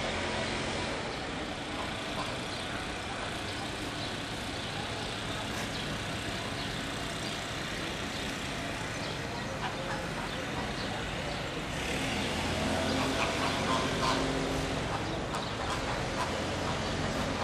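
A small road train's engine rumbles steadily as it rolls slowly along.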